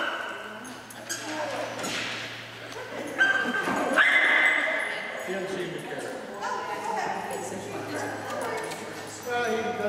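A man talks softly to a dog nearby.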